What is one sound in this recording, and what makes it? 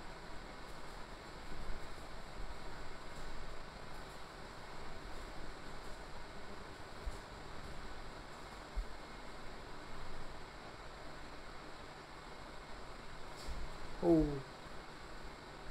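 Feet shuffle and thump softly on a padded floor.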